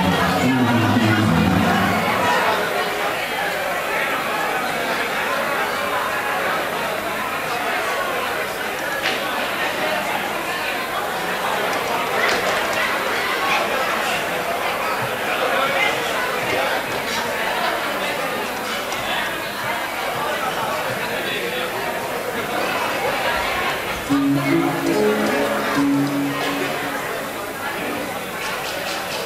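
Men and a woman talk casually nearby in a lively, echoing room.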